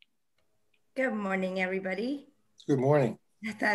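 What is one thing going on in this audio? A woman speaks warmly over an online call.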